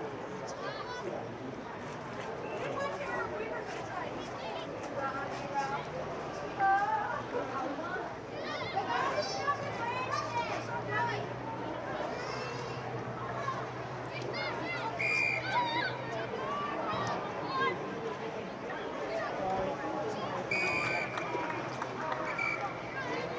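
Boys shout and call out to each other outdoors.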